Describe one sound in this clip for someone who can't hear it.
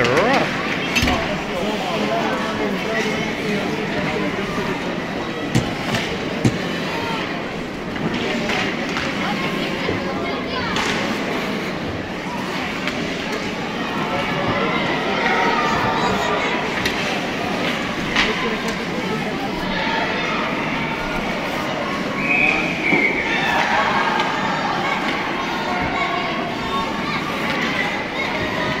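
Hockey sticks clack sharply against a puck and the ice.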